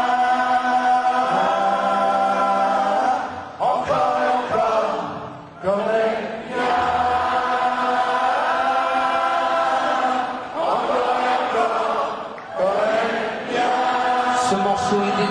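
A man sings into a microphone over loudspeakers in a large hall.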